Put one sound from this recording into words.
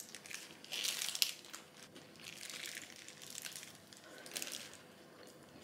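Paper wrapping crinkles around a burger.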